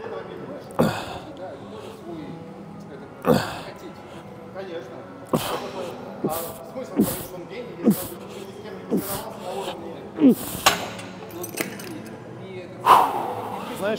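Exercise equipment clanks with each pull of a rope.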